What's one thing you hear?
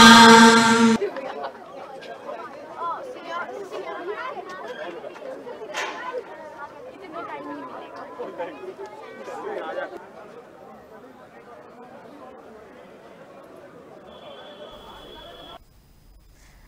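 A crowd of people murmurs and chatters.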